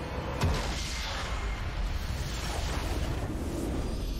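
Video game spell effects crash and whoosh in a battle.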